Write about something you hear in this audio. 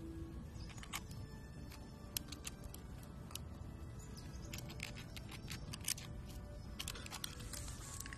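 A squirrel gnaws at a nut with faint scraping clicks.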